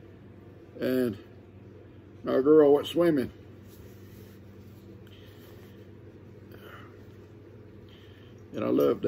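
An elderly man speaks calmly and close by, in short bursts.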